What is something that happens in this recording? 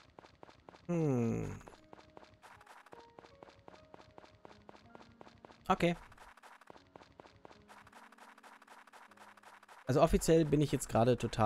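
Quick, light footsteps crunch steadily on snow.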